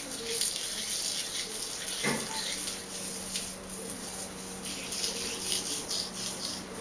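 Fingers rustle and scrunch through thick curly hair close by.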